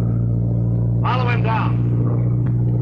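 A man speaks urgently and loudly.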